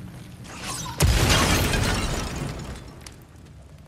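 A burst of fire roars up with a loud whoosh and dies away.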